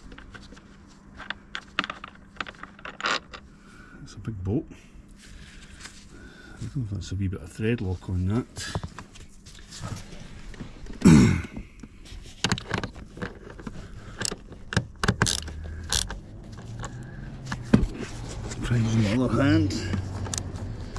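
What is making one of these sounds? A hand tool clicks and rattles against a metal bolt.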